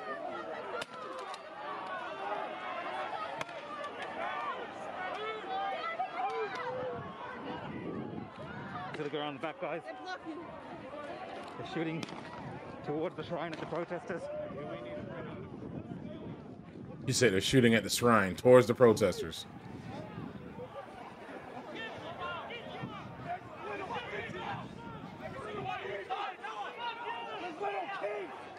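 A crowd of people shouts and talks outdoors.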